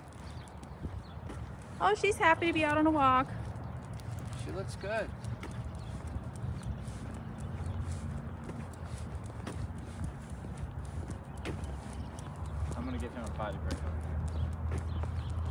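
Footsteps scuff on asphalt.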